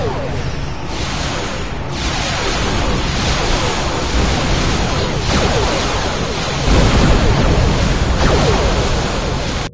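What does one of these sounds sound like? Laser blasts fire rapidly in a space battle.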